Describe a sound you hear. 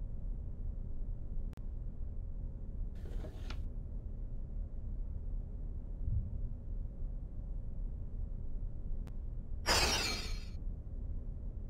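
A low, dark drone hums steadily throughout.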